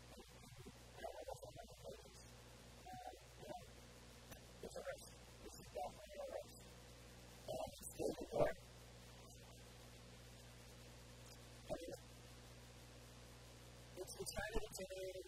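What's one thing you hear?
A man speaks calmly into a clip-on microphone, with pauses.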